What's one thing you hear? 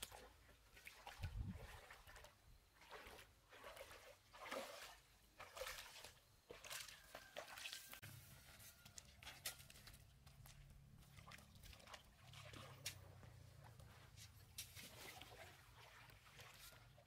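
A man wades and splashes through shallow water.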